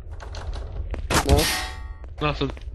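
A metal bar strikes a metal door with a loud clang.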